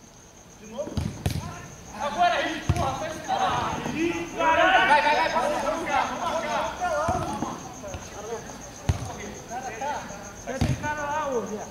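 A football is kicked with sharp, dull thumps.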